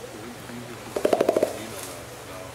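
A gorilla beats its chest in a quick series of hollow thumps.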